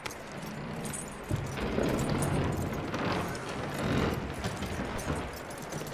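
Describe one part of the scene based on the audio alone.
Hooves clop on wooden boards.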